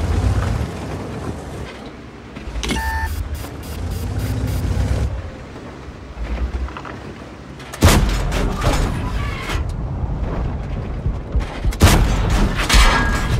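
A tank engine rumbles low and steadily.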